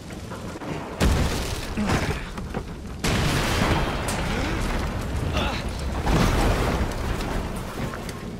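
A loud rushing blast of smoke whooshes past.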